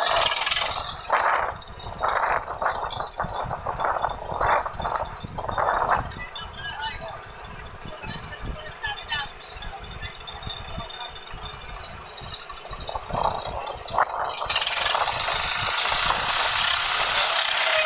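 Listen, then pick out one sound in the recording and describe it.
A tractor engine rumbles.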